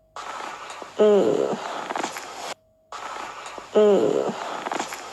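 A young woman moans loudly, close by.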